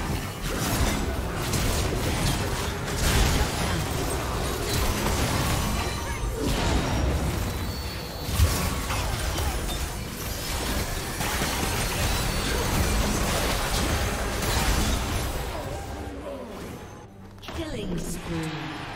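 Game spell effects whoosh and crackle in a fierce battle.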